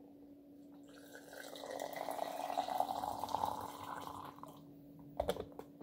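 Water pours into a glass press pot.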